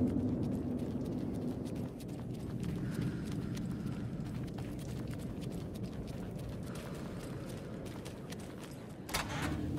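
Footsteps tap on a wet pavement.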